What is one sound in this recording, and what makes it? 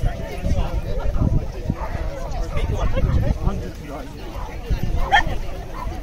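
A crowd of men and women chatters and calls out outdoors.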